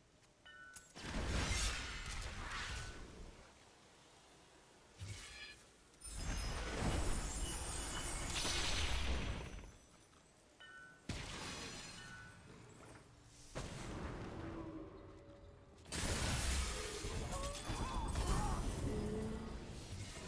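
Magic blasts whoosh and crackle in bursts.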